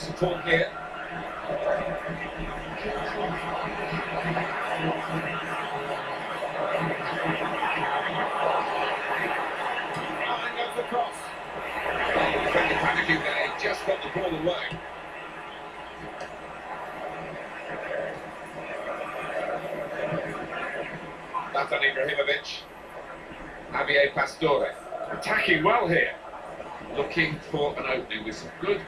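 A stadium crowd cheers steadily through a television speaker.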